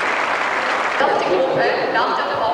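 A woman speaks calmly into a microphone over a loudspeaker.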